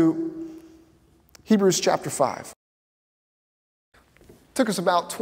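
A man speaks clearly and with animation through a microphone in a large hall.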